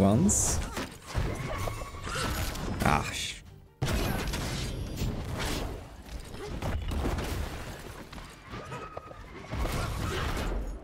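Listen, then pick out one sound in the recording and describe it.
Fighting blows thud and crash in quick bursts.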